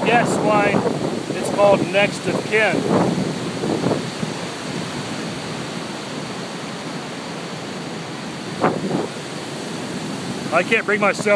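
Water rushes steadily over rocks.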